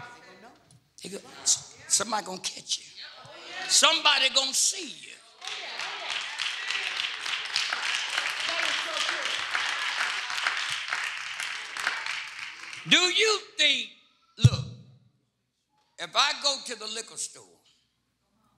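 An elderly man preaches with animation into a microphone.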